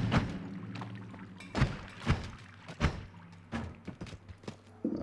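Sharp game hit effects thump and crack repeatedly.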